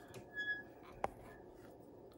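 Hands knock softly against a microscope stand.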